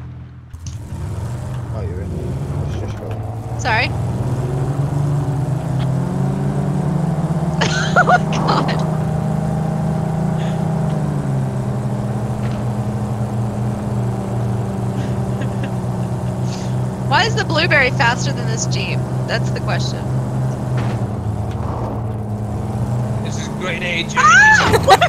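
A vehicle engine drones steadily.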